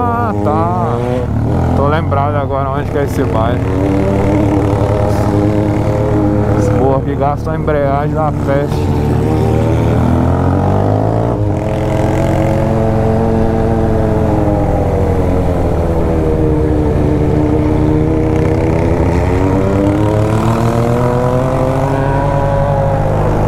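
A motorcycle engine hums steadily up close, rising and falling in pitch as it speeds up and slows down.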